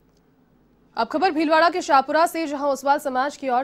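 A young woman reads out the news clearly into a microphone.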